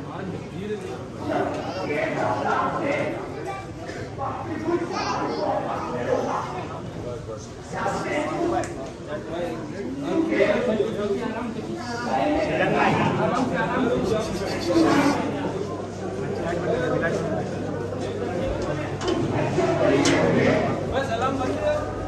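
A crowd of men shouts and chants loudly close by.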